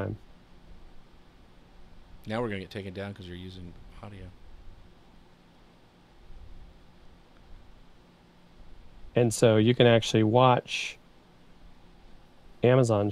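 A man speaks calmly through a microphone, in short bursts.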